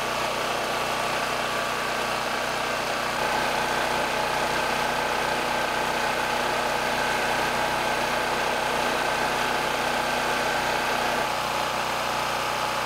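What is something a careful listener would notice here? A fan heater blows with a whirring hum.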